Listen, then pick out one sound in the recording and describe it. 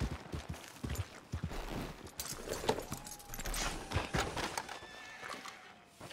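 Horse hooves thud softly on muddy ground.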